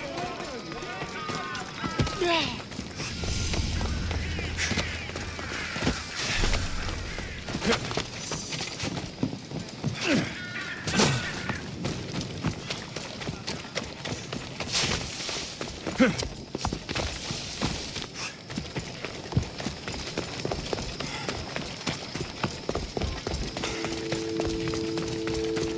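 Footsteps run quickly over stone and gravel.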